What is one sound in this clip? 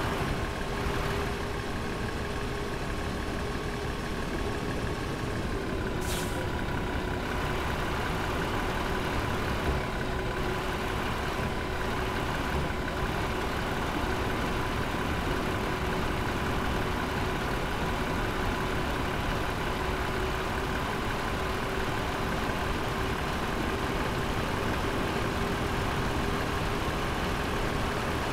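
A semi truck's engine drones while cruising.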